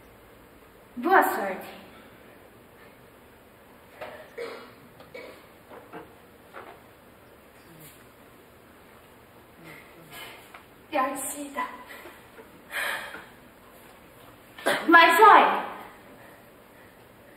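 A young woman speaks with animation on a stage, heard from a distance.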